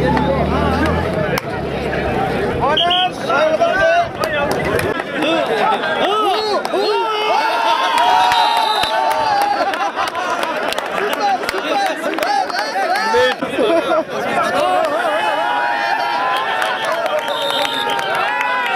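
A large crowd shouts and cheers loudly outdoors.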